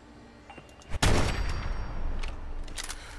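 A rifle fires a loud shot.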